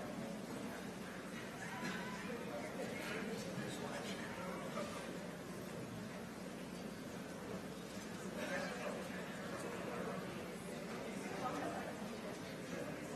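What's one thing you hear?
People in an audience murmur and chat in a large echoing hall.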